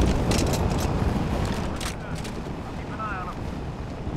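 A weapon clatters as it is picked up.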